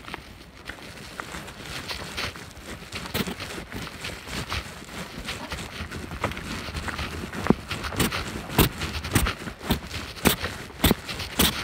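Footsteps crunch on dry leaves and dirt along a trail.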